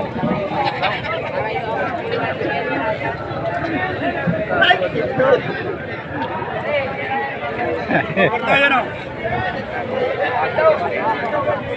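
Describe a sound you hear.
A crowd of men and women talk and call out all around, outdoors.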